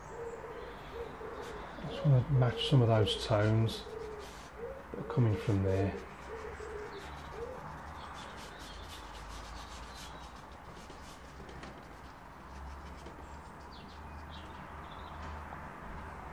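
A brush dabs softly on paper.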